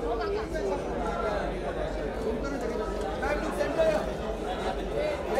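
Several adult men chatter and call out nearby.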